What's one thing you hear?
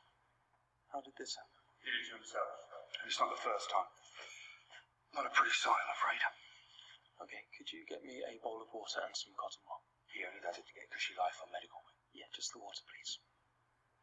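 A young man speaks urgently, close by.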